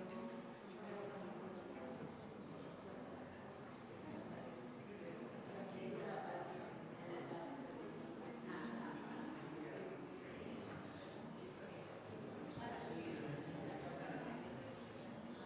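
Many people in an audience chatter quietly in a large hall.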